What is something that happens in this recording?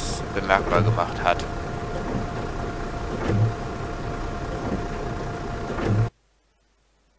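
A bus engine idles with a steady low hum.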